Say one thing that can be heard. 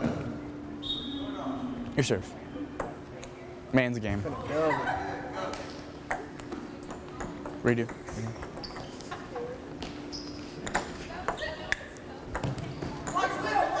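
A ping pong ball clicks sharply on a table and paddles.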